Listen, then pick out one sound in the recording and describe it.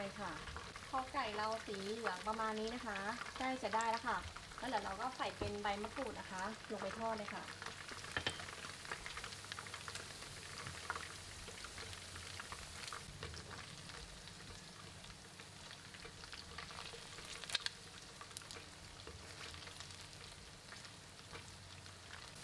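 Food sizzles and crackles steadily in hot oil.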